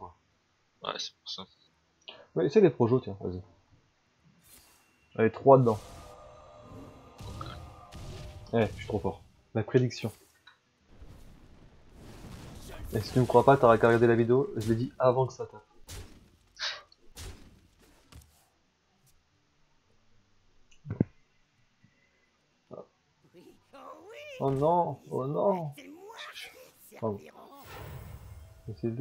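A young man talks with animation into a close headset microphone.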